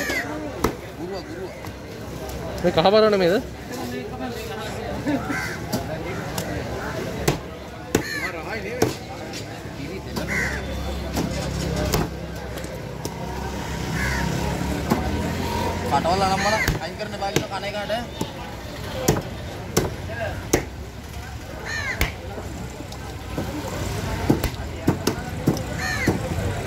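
A heavy knife chops through fish on a wooden block with sharp thuds.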